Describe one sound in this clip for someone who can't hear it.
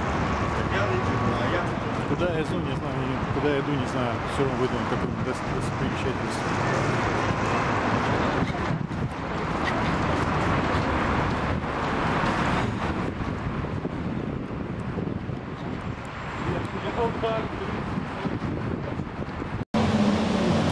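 Traffic rumbles steadily along a busy street.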